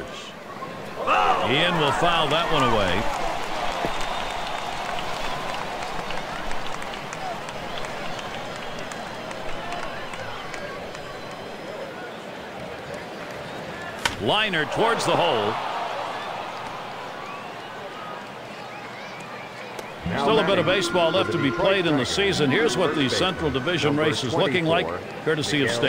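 A large crowd murmurs and cheers in a stadium.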